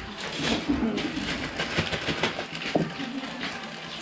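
A knife cuts a small chili.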